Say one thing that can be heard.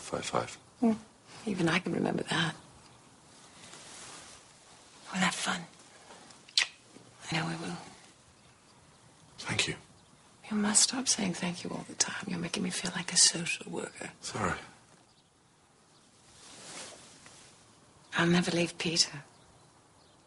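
A woman speaks close by in a soft, teasing voice.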